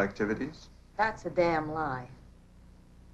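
A young woman answers calmly.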